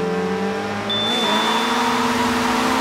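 A start signal beeps once.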